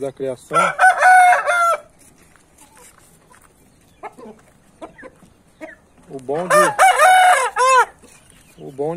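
A rooster crows loudly nearby.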